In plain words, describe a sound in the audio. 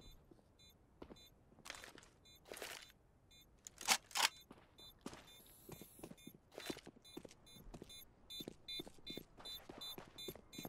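Footsteps tread quickly on hard ground.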